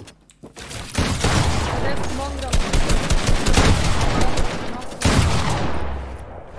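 Gunshots fire rapidly in bursts.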